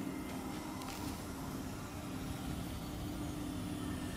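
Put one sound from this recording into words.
A low electric hum drones steadily.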